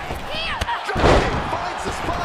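A body slams hard onto the ring mat with a loud thud.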